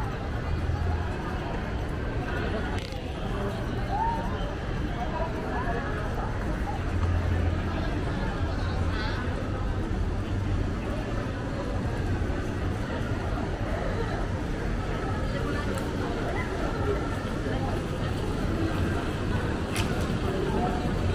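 A busy street crowd murmurs outdoors with distant city hum.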